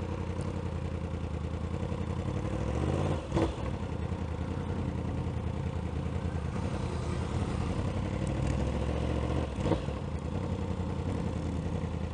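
A motorcycle engine hums steadily up close, rising and dropping in pitch as it shifts gears.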